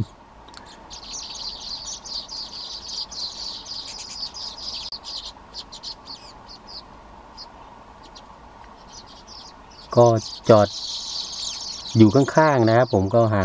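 A small bird chirps in high, quick notes.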